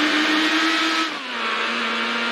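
A racing car engine shifts gear with a sudden drop in pitch.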